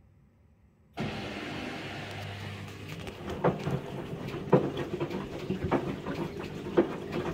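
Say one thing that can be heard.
Water sloshes inside a front-loading washing machine drum.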